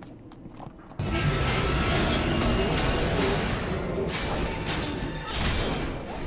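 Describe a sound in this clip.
Weapons clash and spells crackle in a fast fight.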